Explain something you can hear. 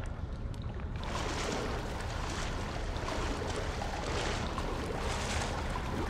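Thick liquid sloshes as a man wades through it.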